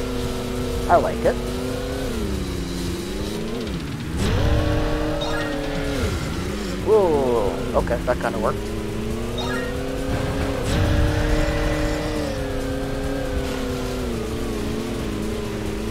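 A jet ski engine whines steadily, its pitch rising and falling with speed.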